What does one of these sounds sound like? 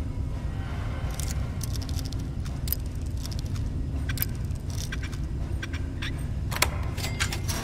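A lock pick scrapes and clicks inside a lock.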